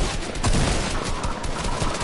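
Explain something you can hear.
A laser gun fires in a video game.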